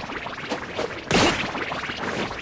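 A sword swings with a sharp whoosh.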